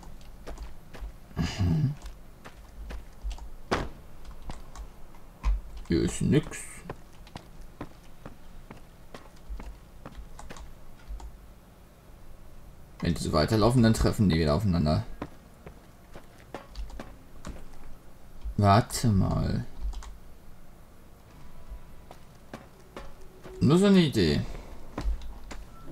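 Footsteps crunch on dirt and wooden boards.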